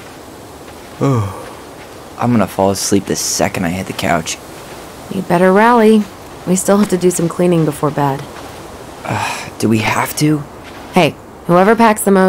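A young man talks calmly.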